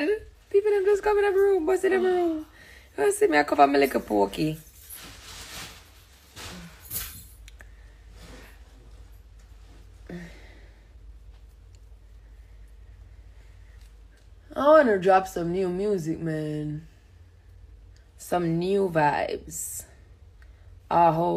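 A young woman talks casually and close to a microphone, with pauses.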